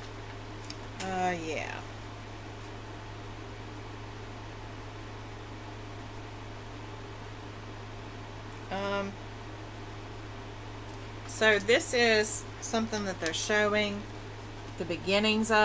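A middle-aged woman speaks calmly and close by, in short bursts.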